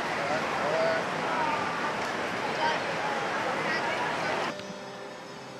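Several young people talk and laugh close by.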